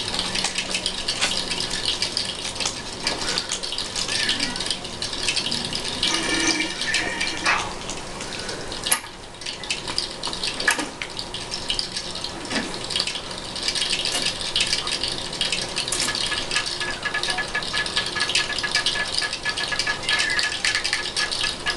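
Keys clatter rapidly on a computer keyboard.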